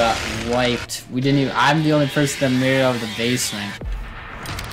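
A chainsaw revs loudly.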